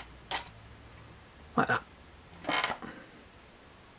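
Small plastic joints click softly as a toy figure's arms are moved.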